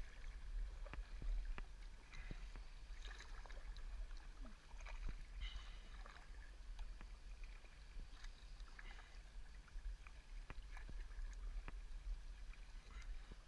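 A paddle splashes and drips in calm water.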